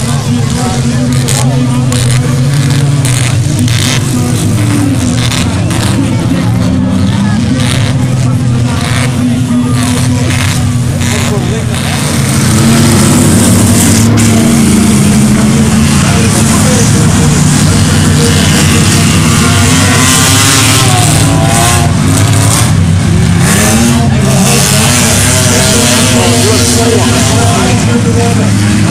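Car engines roar and rev.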